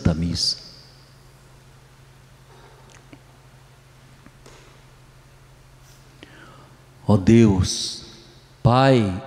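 An elderly man speaks slowly and calmly into a microphone, in a reverberant hall.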